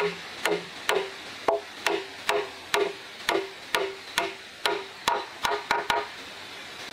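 A wooden mallet knocks wooden pegs into a board in quick, steady blows.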